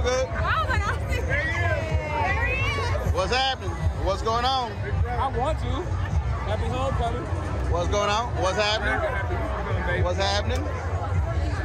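A man speaks cheerfully close by.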